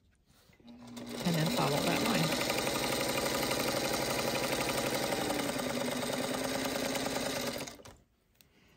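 A sewing machine runs with a fast, steady whirring and needle clatter.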